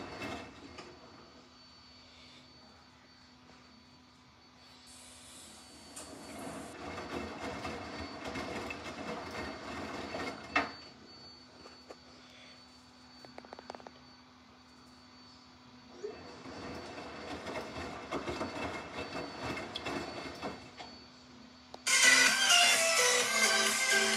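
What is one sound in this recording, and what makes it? A washing machine drum turns, tumbling wet laundry with soft sloshing.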